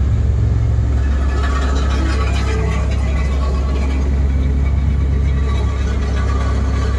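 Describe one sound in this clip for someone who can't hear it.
Hydraulics whine as an excavator's arm moves.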